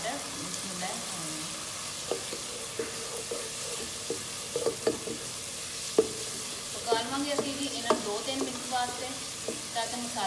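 A wooden spatula scrapes and knocks against a pan as food is stirred.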